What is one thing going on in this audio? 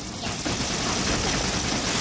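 A blast bursts loudly nearby.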